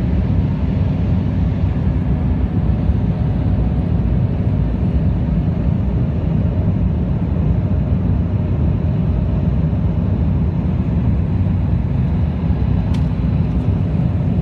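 Airplane engines roar steadily in a deep, constant rumble.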